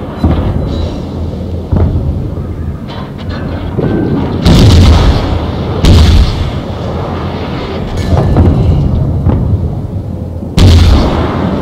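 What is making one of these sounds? Heavy naval guns fire in booming blasts.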